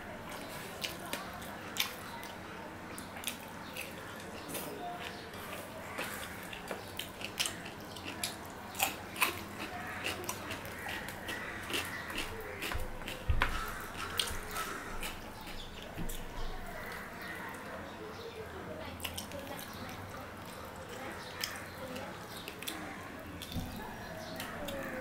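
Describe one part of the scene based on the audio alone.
Fingers squish and mix rice and curry on a metal plate.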